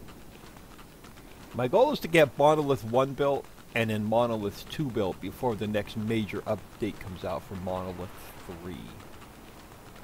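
Footsteps crunch on loose dirt.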